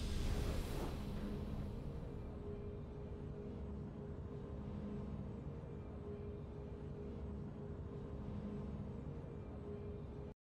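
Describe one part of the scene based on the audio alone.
A burst of triumphant game music rings out and settles into a steady, low, droning tune.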